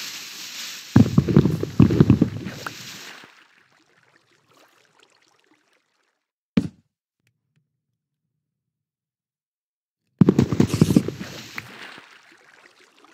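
Water splashes loudly in bursts.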